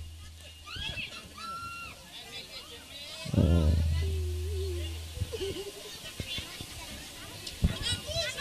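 A band plays music through loudspeakers.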